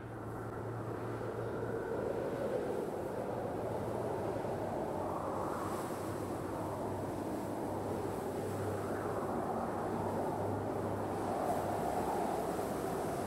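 Wind blows steadily outdoors, rising and falling softly.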